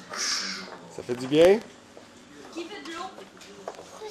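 A small child babbles.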